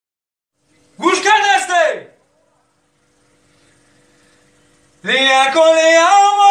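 A young man sings a melodic chant loudly and with feeling, close by.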